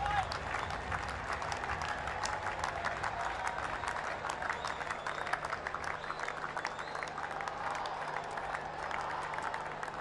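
A man claps his hands slowly.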